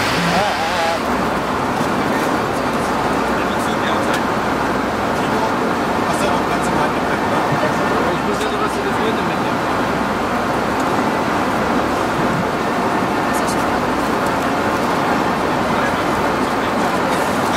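A jet airliner's cabin hums with a steady engine roar.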